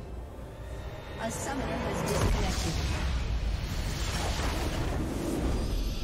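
A video game fanfare plays for a win.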